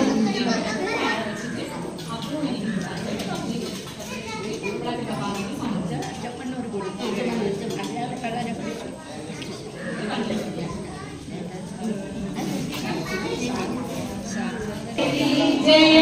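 A crowd of women and girls chatter and murmur nearby.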